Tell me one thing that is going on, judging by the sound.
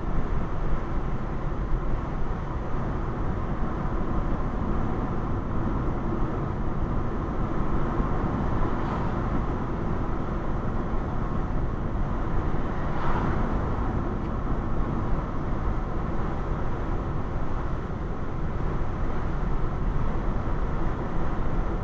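A car engine hums and tyres rumble steadily on a highway.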